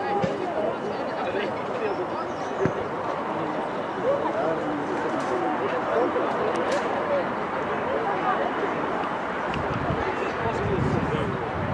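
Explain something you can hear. A group of young players talk and call out together in the distance, outdoors.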